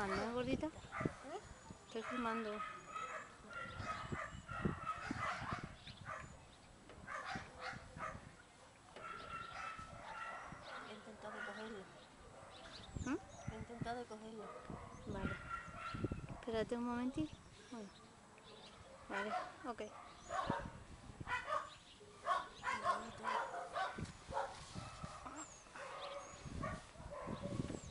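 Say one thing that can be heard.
An elderly woman talks calmly close by.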